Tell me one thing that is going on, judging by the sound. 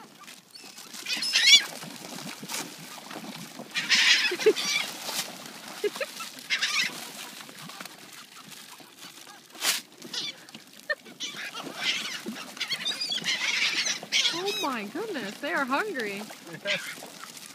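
Gulls call loudly in a flock close by.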